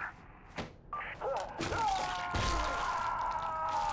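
A wet, squelching tearing sound comes as a body is ripped apart.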